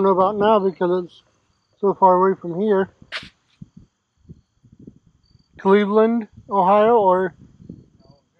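A man talks close by, with animation.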